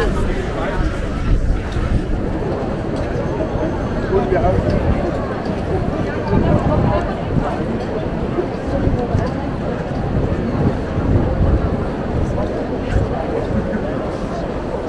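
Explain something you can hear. A crowd of people chatters in a busy outdoor square.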